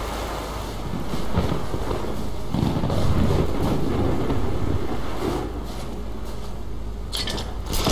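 Heavy boots crunch through snow.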